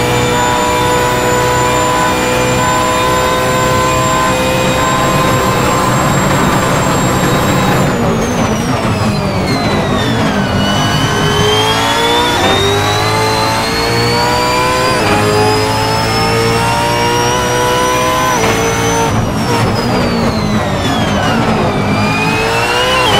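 A racing car engine roars loudly, its pitch rising through the gears and dropping as it slows for corners.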